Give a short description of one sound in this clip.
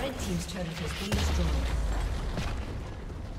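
A tower crumbles with a deep rumbling crash.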